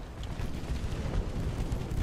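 Heavy ship guns boom in the distance.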